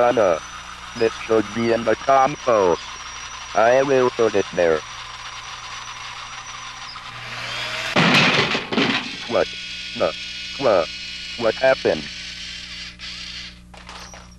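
A robot arm's motors whir as it moves.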